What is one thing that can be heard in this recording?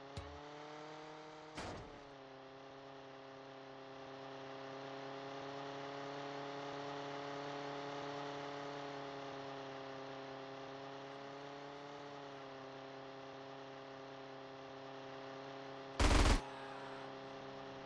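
A small propeller plane's engine drones steadily, rising and falling slightly in pitch.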